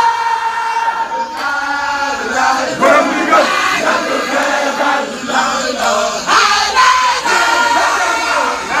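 A crowd of men chant and sing loudly together.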